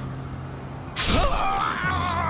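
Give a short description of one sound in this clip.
A heavy thud lands after a fall.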